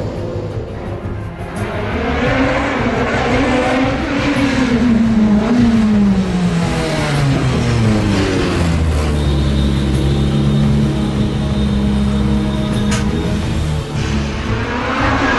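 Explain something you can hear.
A racing car engine roars loudly, revving high and dropping in pitch as it shifts gears and speeds past.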